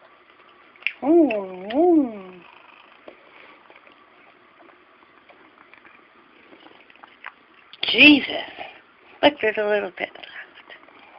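A cat meows loudly close by, several times.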